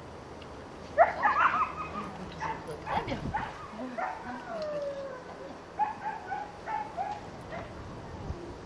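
A woman talks to a puppy in a high, coaxing voice close by, outdoors.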